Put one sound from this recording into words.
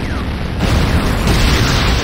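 An explosion booms nearby.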